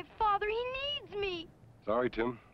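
A boy speaks with emotion.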